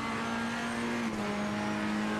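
A race car engine shifts gear with a sudden drop in pitch.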